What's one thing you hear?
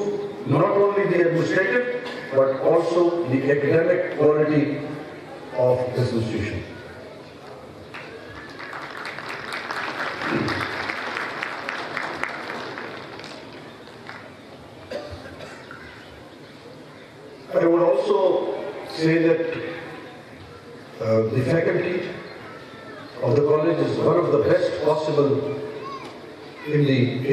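A middle-aged man speaks firmly into a microphone, heard through loudspeakers, with long pauses.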